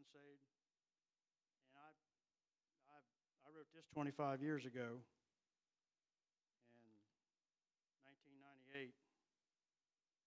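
An elderly man speaks into a microphone in short, measured phrases with pauses, heard through a loudspeaker.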